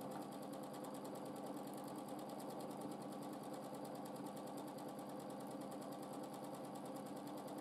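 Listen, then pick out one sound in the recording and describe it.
A sewing machine stitches rapidly with a steady whirring hum.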